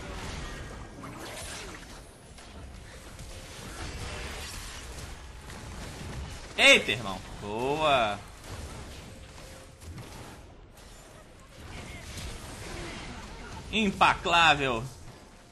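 A young man talks into a microphone at a steady pace.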